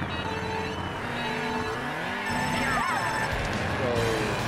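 Kart engines rev up and roar away.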